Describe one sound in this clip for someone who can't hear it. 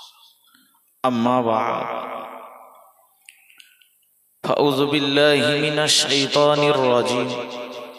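A young man chants in a long melodic voice into a microphone, heard through loudspeakers.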